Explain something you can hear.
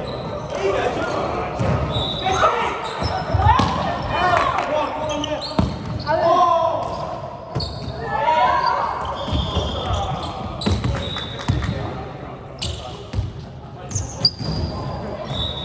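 Young men call out to one another in an echoing sports hall.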